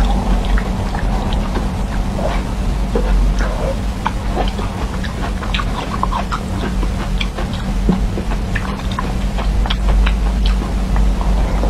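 A young woman bites and crunches on a firm jelly sweet close to a microphone.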